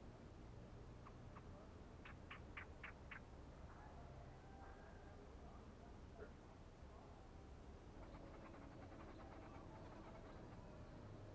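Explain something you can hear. Small birds chirp in short bursts outdoors.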